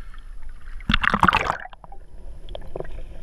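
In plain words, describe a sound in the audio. Water splashes loudly as a person plunges in.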